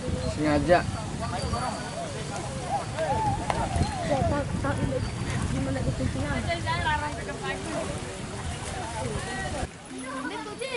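A horse wades through water with soft splashing.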